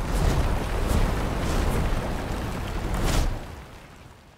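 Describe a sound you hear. Rockets roar loudly as they launch.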